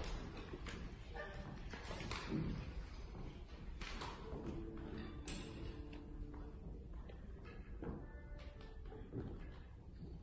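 A small ensemble of plucked strings and zither plays softly in a large hall.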